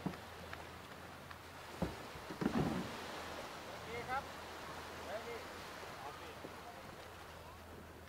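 A man wades and splashes through shallow water.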